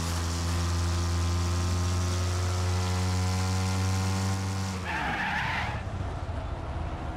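A car engine roars at high revs, then drops sharply.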